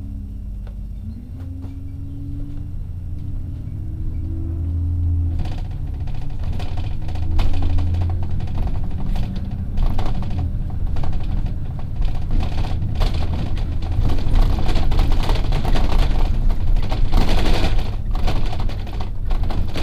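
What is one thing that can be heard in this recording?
A vehicle engine hums steadily at low pitch.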